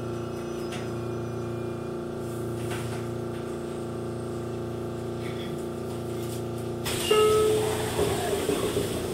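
An electric train's motor hums steadily.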